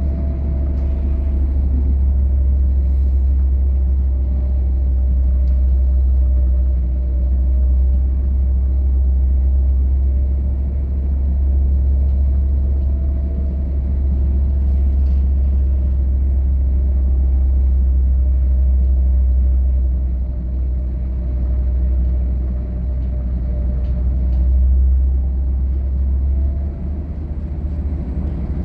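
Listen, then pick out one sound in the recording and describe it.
A vehicle rumbles low and steadily as it drives along a road.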